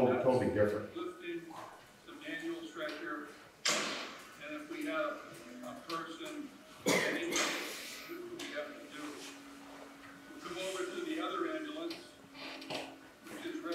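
Other men and women talk quietly across the room.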